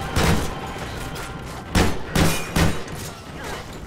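Sniper rifle shots crack loudly and echo.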